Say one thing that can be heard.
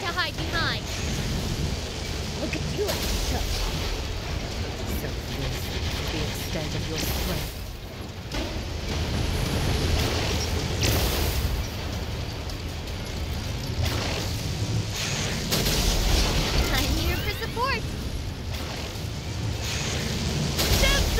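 Cannon shots boom with loud blasts.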